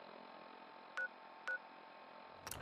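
Short electronic beeps sound from a menu.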